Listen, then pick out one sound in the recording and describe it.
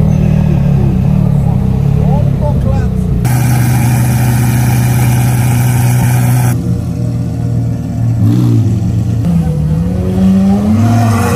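A sports car engine idles with a deep, loud rumble.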